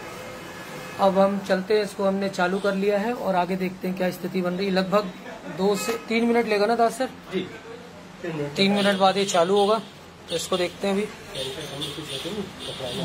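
A man speaks close by, explaining calmly.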